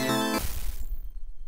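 A retro video game plays a short electronic buzzing tone.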